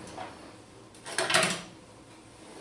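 Metal tools clink against each other.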